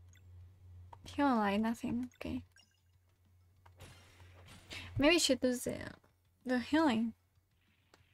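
A young woman speaks with animation into a microphone, her voice rising and falling.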